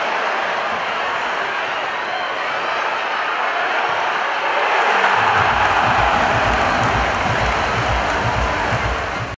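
A stadium crowd roars steadily and swells louder.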